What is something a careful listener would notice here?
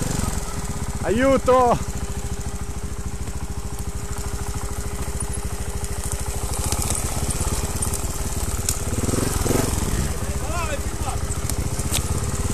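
Other dirt bike engines rev nearby.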